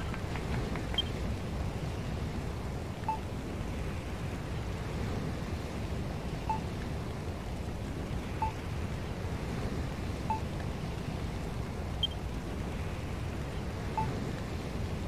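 Short electronic blips sound as game menu items are selected.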